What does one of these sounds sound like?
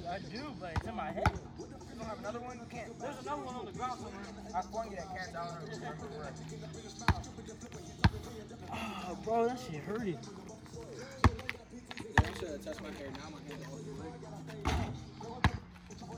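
A basketball bounces sharply on pavement.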